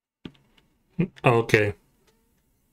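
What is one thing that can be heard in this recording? A man speaks briefly with animation, close to a microphone.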